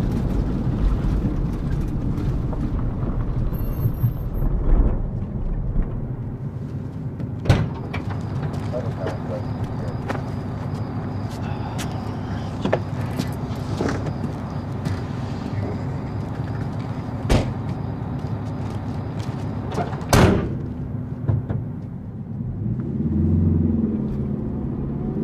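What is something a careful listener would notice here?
A van engine rumbles steadily from inside the vehicle.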